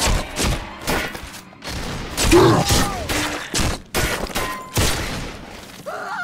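Gunshots blast in quick bursts.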